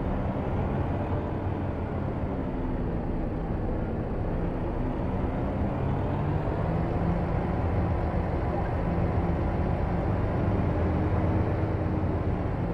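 A truck engine rumbles steadily, its pitch rising and falling slightly.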